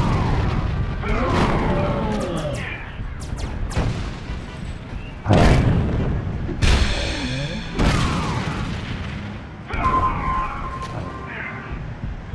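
Metal crashes and clangs as wreckage is thrown.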